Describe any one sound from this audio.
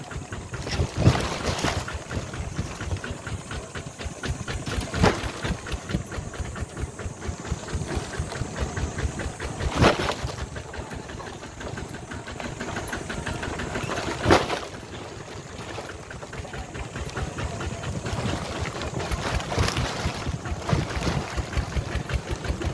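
Wheels rattle and bump over a rough dirt track.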